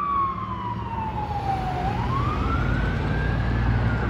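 A car engine hums close by.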